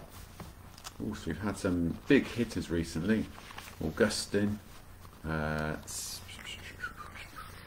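A middle-aged man speaks calmly and close, as if through an online call.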